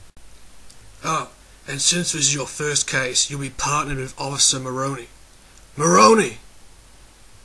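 An elderly man speaks gruffly and with animation.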